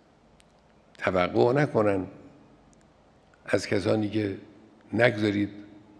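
An elderly man speaks slowly and firmly into a microphone, in short phrases with pauses.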